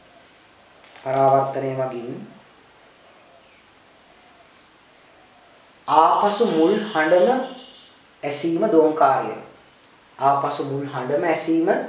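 A man explains clearly and at a measured pace, close to a microphone.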